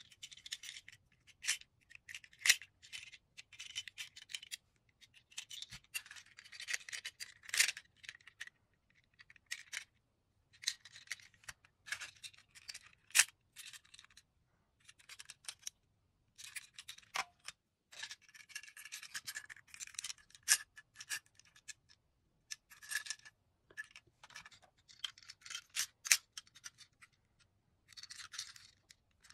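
Plastic toy cars click and clack as a hand picks them up and sets them down.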